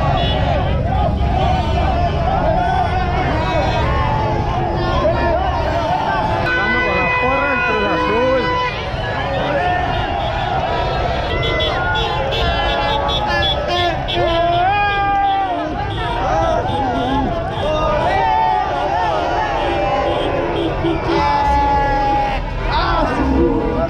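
A crowd cheers and chants loudly outdoors.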